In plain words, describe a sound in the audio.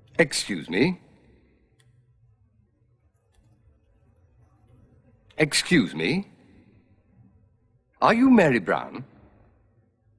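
A man speaks calmly and politely, close by.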